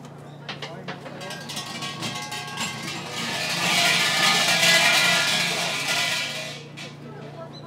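A large hanging bell rattles and jangles as its rope is shaken, then falls quiet.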